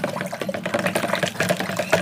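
Hands scrub and splash in water.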